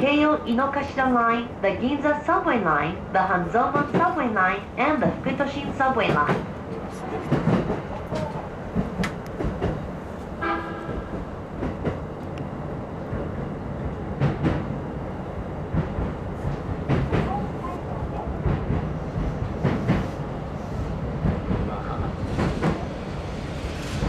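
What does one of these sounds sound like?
A train rolls slowly along the tracks with a low rumble.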